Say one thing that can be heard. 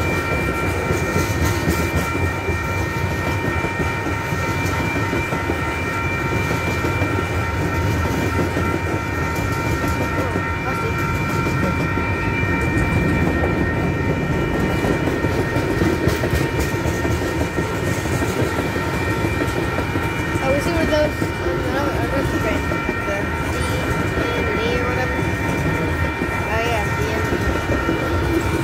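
Steel wheels squeal on the rails with a steady ringing whine.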